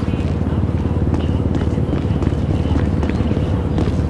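Footsteps run across pavement.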